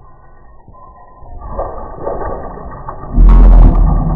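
Water splashes onto a man's face.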